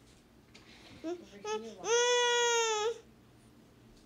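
A young girl nearby calls out in a long, drawn-out, high voice.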